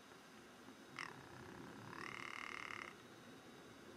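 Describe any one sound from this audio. A bird gives short, harsh calls nearby.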